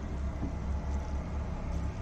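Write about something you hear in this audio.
Water trickles onto soil.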